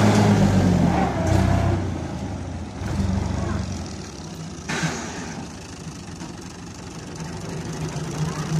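A tractor engine rumbles and revs nearby.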